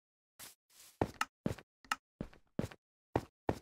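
Footsteps knock sharply on stone in an even rhythm.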